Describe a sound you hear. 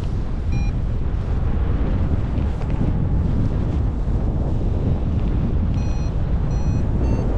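Strong wind rushes and buffets steadily outdoors.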